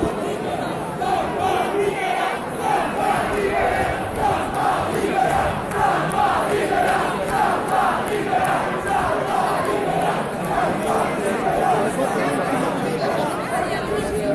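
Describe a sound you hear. A crowd chants in rhythm, growing louder.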